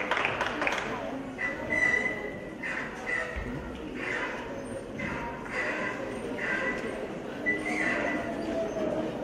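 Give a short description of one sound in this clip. A mixed choir sings together in a large hall.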